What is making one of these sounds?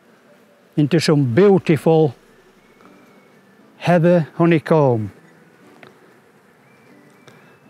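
Bees buzz softly around a hive.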